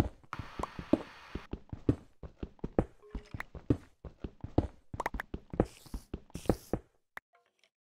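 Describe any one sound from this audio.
Dirt and gravel crunch in quick, repeated blows as blocks are dug out.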